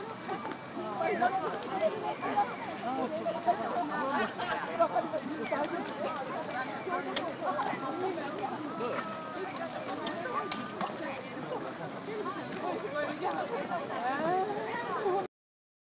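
A crowd of men and women chatter and call out close by, outdoors.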